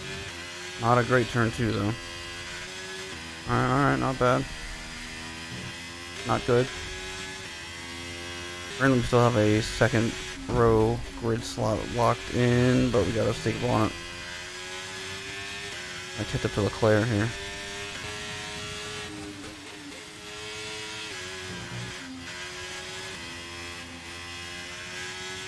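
A racing car engine whines steadily, rising and falling in pitch as it shifts gears.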